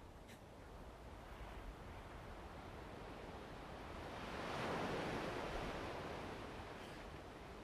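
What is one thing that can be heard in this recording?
Waves wash softly against a shore, swelling and fading.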